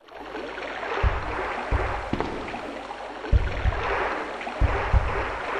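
Footsteps thud quickly on a hard floor as someone runs.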